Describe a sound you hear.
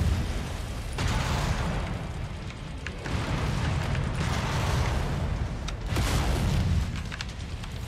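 Explosions boom and rumble heavily.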